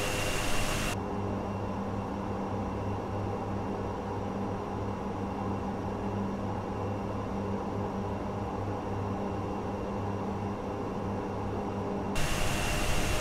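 Turboprop engines drone low and muffled inside an airliner cockpit.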